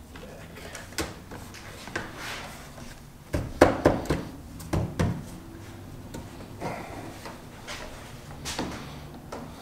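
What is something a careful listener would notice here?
Plastic car trim clicks and knocks as it is pulled and pressed into place.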